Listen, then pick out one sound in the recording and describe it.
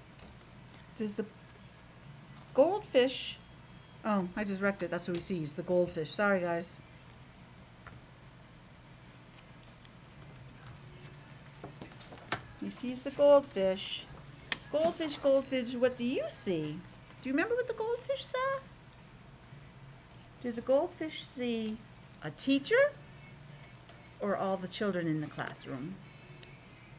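A middle-aged woman reads aloud close to the microphone, her voice muffled by a mask, with pauses between phrases.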